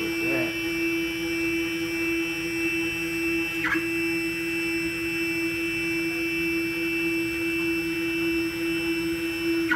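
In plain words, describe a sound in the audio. A machine spindle whines steadily at a high pitch.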